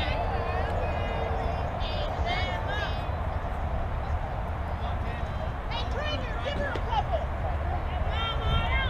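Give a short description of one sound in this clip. Young girls shout and cheer in high voices at a distance.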